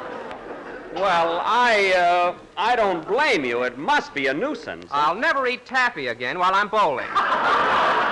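A man speaks with animation over an old radio broadcast.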